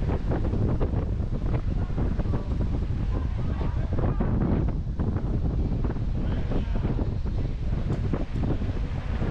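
Bicycle tyres crunch over a dirt trail as mountain bikes ride past close by.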